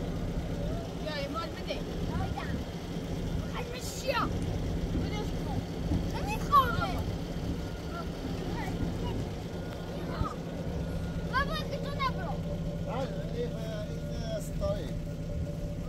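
A young girl talks excitedly nearby.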